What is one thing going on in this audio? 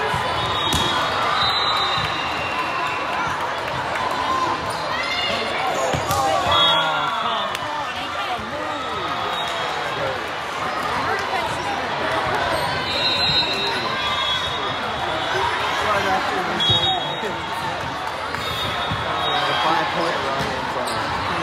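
A ball is struck with sharp smacks during a rally in a large echoing hall.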